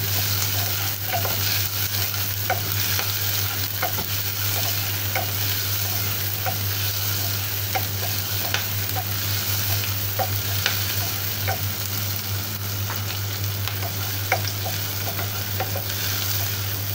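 A wooden spatula scrapes and knocks against a pot.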